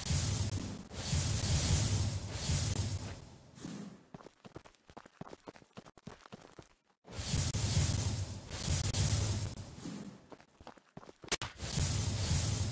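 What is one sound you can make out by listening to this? Magic blasts whoosh and roar in bursts.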